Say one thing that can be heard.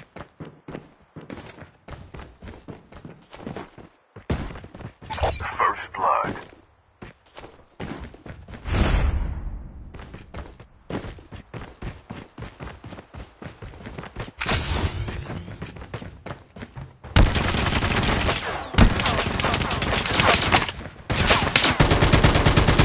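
Quick footsteps thud along as a figure runs.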